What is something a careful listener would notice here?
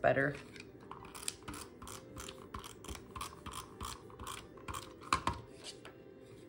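A tape runner clicks and rasps along paper.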